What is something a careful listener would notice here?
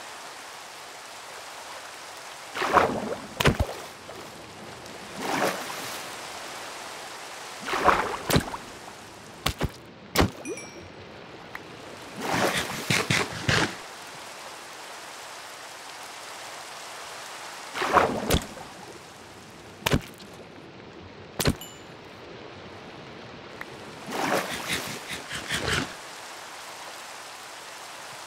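Rain patters steadily on water.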